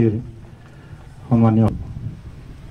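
A man speaks briefly close by.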